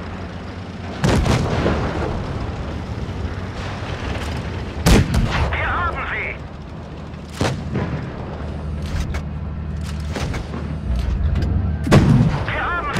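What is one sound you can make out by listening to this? Tank cannons fire with loud booming blasts.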